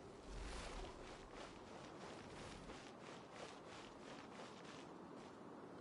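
Quick footsteps patter on a stone floor.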